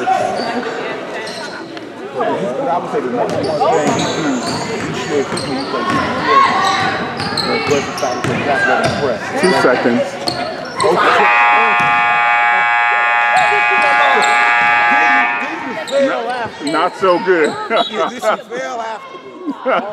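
A crowd of spectators chatters and cheers in an echoing hall.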